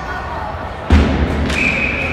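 A hockey stick slaps a puck with a sharp crack.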